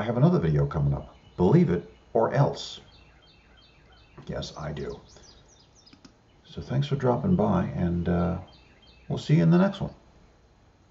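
An elderly man speaks calmly and closely into a microphone, pausing between phrases.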